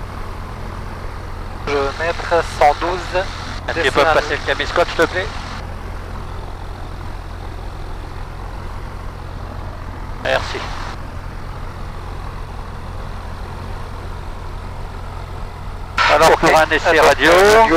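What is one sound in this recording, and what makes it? A small plane's engine drones steadily at a low pitch.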